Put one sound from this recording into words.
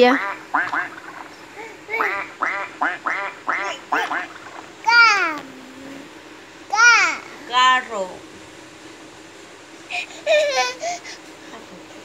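A young child babbles and squeals excitedly close by.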